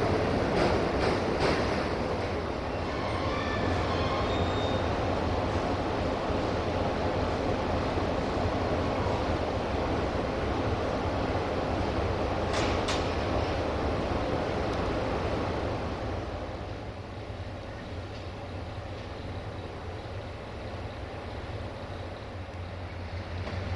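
A passenger train rolls past with a steady rumble and clatter of wheels on the rails.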